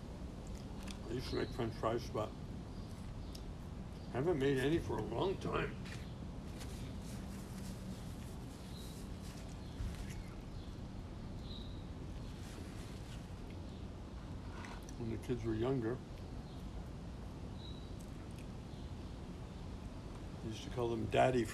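An elderly man speaks calmly nearby, outdoors.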